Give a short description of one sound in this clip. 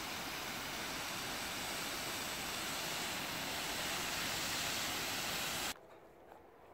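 A garden hose sprayer hisses loudly as water sprays in a wide fan.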